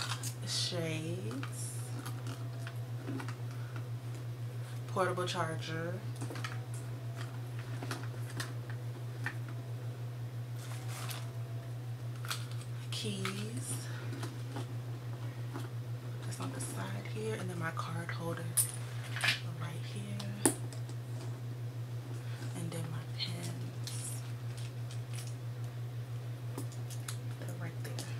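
Items rustle and knock as a woman handles them.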